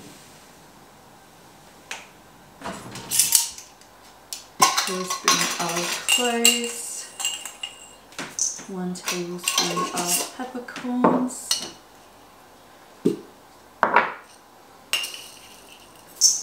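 Spices pour and rattle into a metal bowl.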